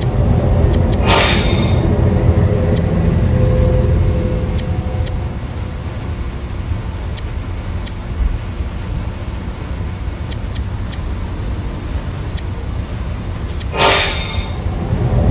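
A magical shimmering whoosh sounds as a light beam snaps into place.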